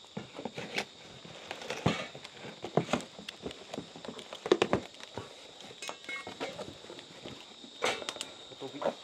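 A cardboard box thumps and scrapes as a man handles it.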